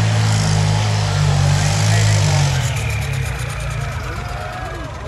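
A tractor engine roars loudly, then eases off.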